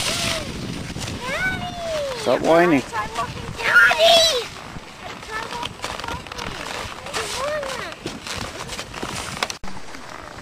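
A young girl talks excitedly close by.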